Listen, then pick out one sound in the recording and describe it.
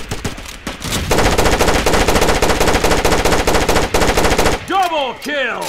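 A rifle fires rapid bursts close by.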